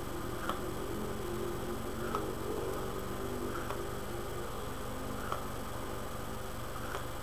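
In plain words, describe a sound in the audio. A man puffs on a pipe with soft, regular smacking sounds.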